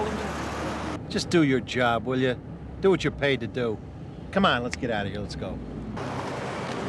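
Another middle-aged man speaks calmly from inside a car.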